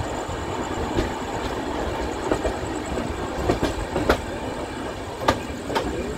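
Train wheels clack sharply over rail joints.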